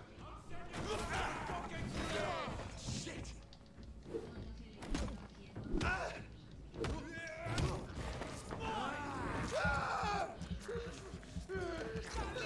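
Heavy blows thud in a fight.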